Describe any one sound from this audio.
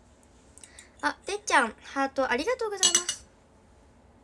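A teenage girl speaks brightly and close to a microphone.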